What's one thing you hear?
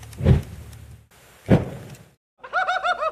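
A bonfire crackles and roars.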